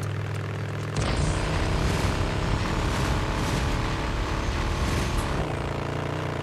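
A motorcycle engine revs loudly for a few seconds.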